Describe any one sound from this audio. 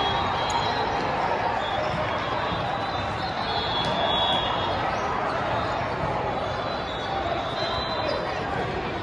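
A crowd murmurs and chatters throughout a large echoing hall.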